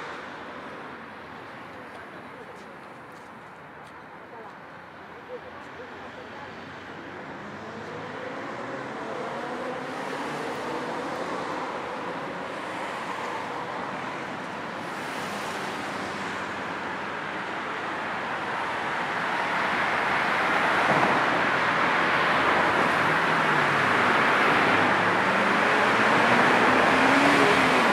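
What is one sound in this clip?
Road traffic hums steadily in the distance and slowly grows louder.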